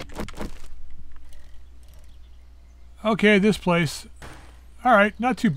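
Bicycle wheels roll over a road.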